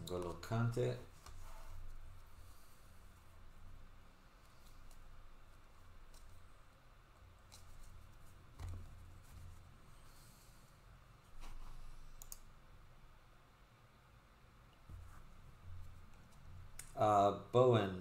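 Trading cards rustle and slide against each other as they are flipped through by hand.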